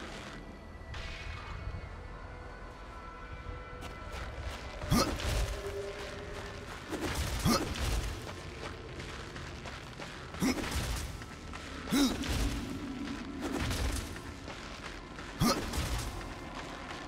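Heavy armored footsteps thud on stone.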